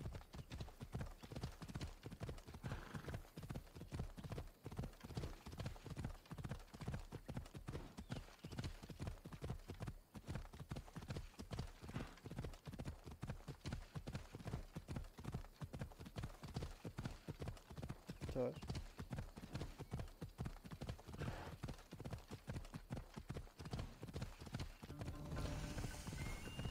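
Hooves gallop quickly and steadily on a dirt path.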